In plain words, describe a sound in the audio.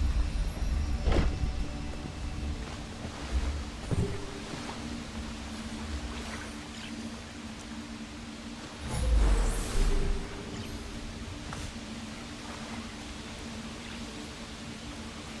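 Footsteps patter over ground and splash through shallow water.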